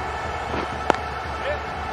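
A cricket bat cracks sharply against a ball.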